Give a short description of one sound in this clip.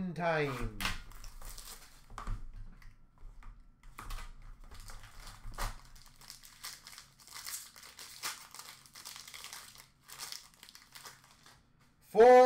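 Foil card wrappers crinkle and tear open.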